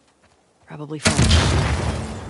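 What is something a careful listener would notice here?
A pistol fires a loud shot that echoes away.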